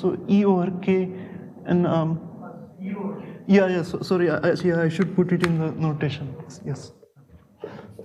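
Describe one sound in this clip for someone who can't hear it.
A man lectures with animation through a microphone in an echoing room.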